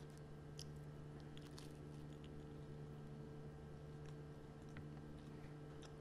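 Crisp toast crunches and crackles close to a microphone.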